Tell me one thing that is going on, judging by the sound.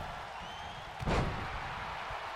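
A body slams onto a wrestling mat with a thud.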